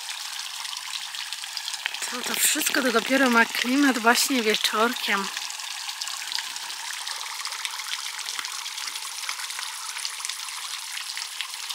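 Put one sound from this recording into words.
Water from a small fountain splashes and trickles steadily.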